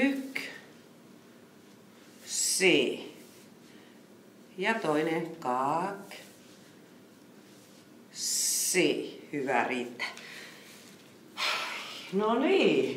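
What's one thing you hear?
A woman speaks calmly into a microphone, giving instructions in short phrases.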